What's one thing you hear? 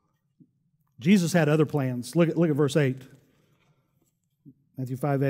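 A middle-aged man speaks with animation through a microphone.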